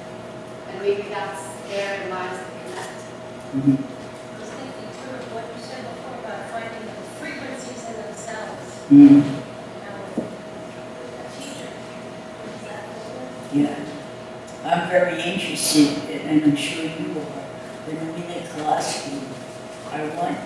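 A woman speaks with animation through a microphone in a large room.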